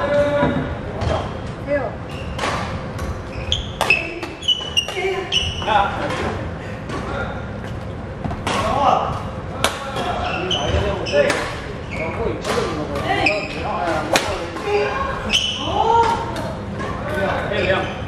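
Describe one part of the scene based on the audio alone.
Badminton rackets strike a shuttlecock in a large echoing hall.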